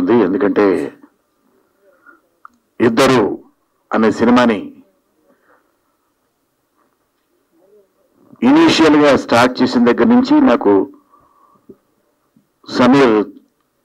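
An older man speaks into a microphone over a loudspeaker, in short bursts with pauses.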